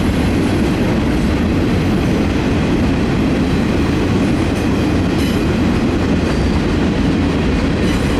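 Steel wheels click over rail joints.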